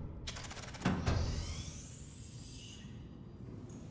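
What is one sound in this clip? A heavy metal hatch clanks open.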